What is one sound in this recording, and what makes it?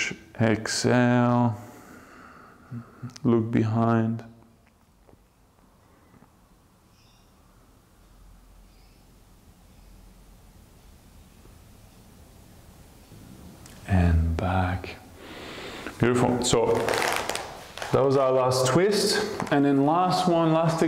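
A man speaks calmly and clearly into a close microphone, pausing at length.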